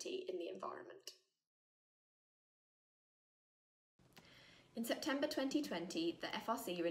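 A young woman speaks calmly and close to a microphone.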